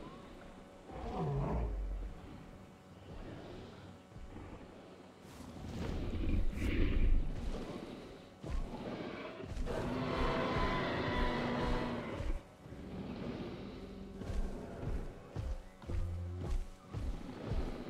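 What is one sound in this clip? Heavy dinosaur footsteps thud on grass.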